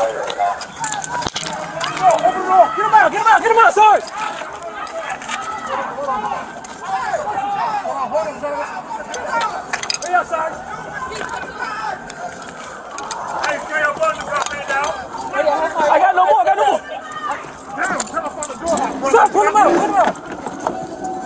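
Several men shout urgently nearby.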